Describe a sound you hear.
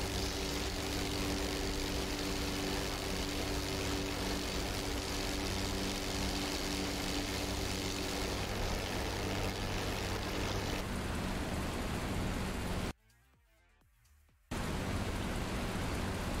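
A propeller plane's engine drones steadily, close by, with rushing wind.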